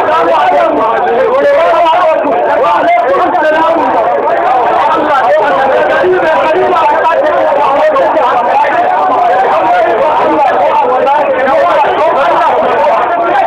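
A dense crowd of men chants loudly together close by.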